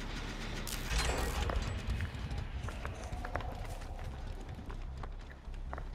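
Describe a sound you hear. Footsteps run quickly over snowy ground.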